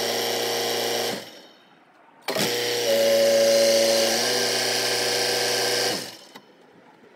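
A tractor engine roars loudly, then cuts off.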